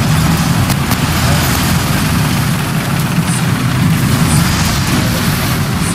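Tank tracks clatter and squeak over rough ground.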